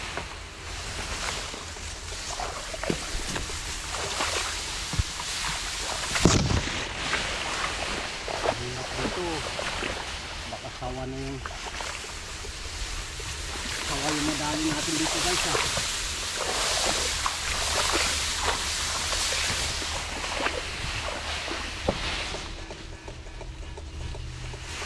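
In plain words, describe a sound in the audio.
Tall grass rustles and swishes as a person pushes through it.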